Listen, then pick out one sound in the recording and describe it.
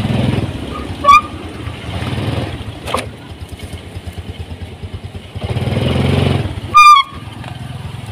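A motorcycle horn beeps briefly.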